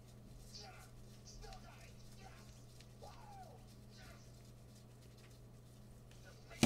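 Cards and plastic wrapping rustle and crinkle in gloved hands.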